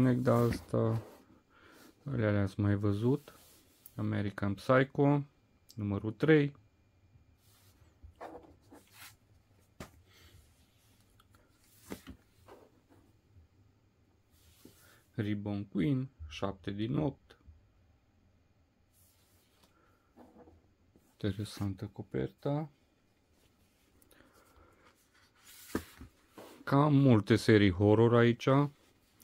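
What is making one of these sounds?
Paper rustles and slides across a tabletop.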